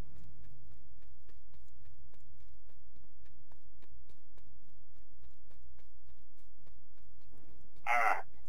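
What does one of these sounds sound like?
Footsteps crunch steadily and quickly over grass and dirt.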